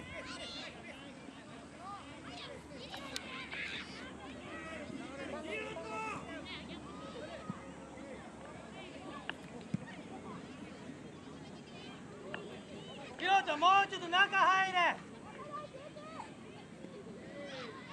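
A crowd of people chatters in the background outdoors.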